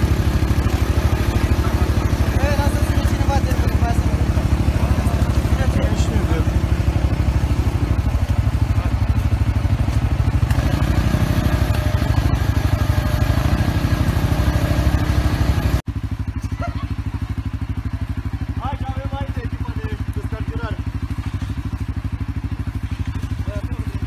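A quad bike engine idles close by with a steady rumble.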